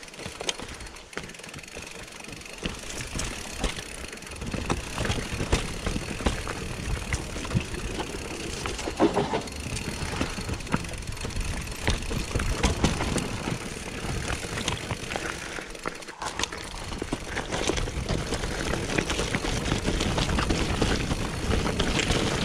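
A bicycle frame and chain rattle over bumps.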